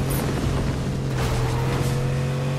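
Tyres skid and spray through snow.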